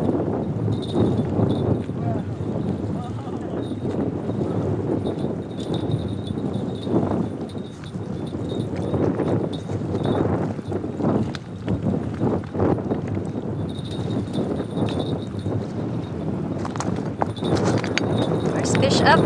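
Wind blows steadily across the microphone outdoors.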